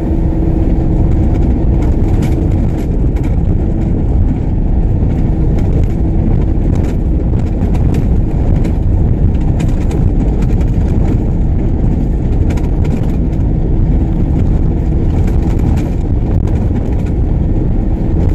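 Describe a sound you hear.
Tyres crunch and rattle over a dirt road, with small knocks from bumps.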